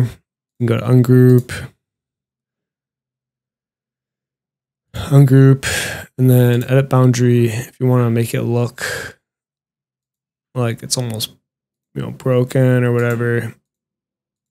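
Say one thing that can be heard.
A young man speaks calmly and closely into a microphone, in short bursts.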